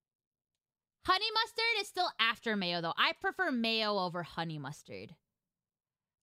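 A young woman speaks animatedly and close to a microphone.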